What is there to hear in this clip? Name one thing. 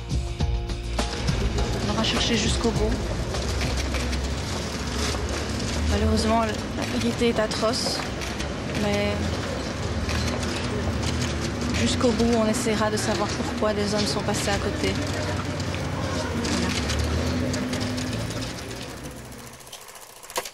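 A young woman speaks calmly outdoors, close by.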